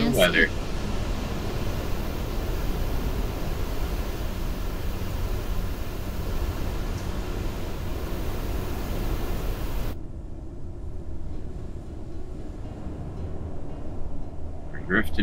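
A vehicle engine rumbles low and steadily.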